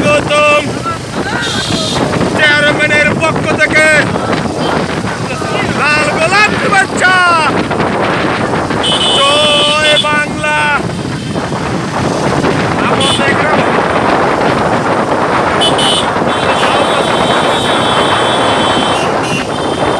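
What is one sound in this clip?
Motorbike engines hum steadily as a group rides along outdoors.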